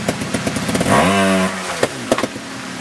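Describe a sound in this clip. A motorbike engine revs up sharply.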